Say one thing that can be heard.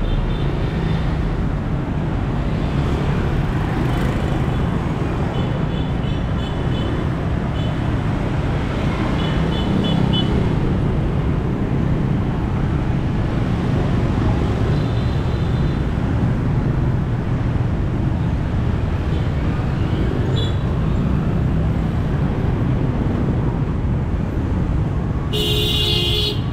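Motorbike engines drone and buzz steadily as traffic passes close by on a busy street.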